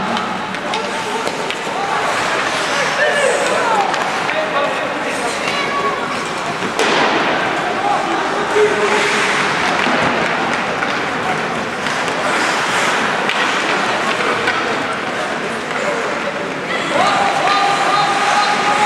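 Spectators talk and shout in a large echoing arena.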